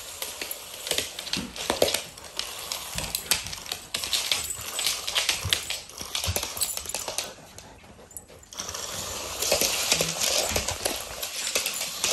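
A dog's claws click and scrabble on a hard floor.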